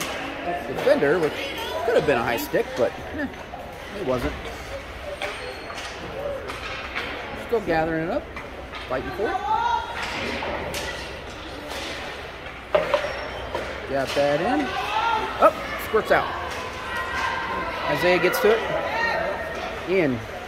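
People talk and call out nearby in a large echoing rink.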